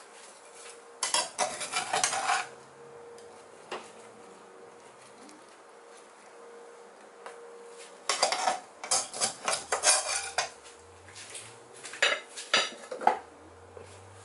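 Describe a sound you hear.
A metal spatula scrapes and clinks against a frying pan.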